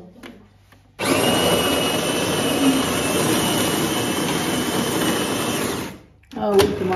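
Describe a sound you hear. A coffee machine whirs and grinds loudly.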